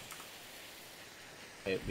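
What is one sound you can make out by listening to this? A fire crackles and hisses.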